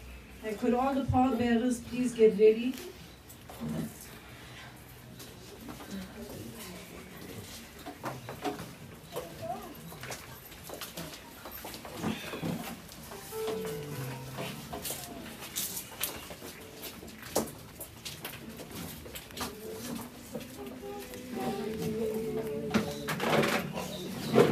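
A group of men and women sings a slow hymn nearby.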